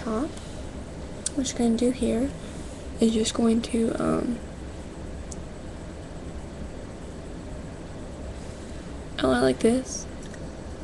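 A young woman speaks casually and close to a microphone, in short bursts.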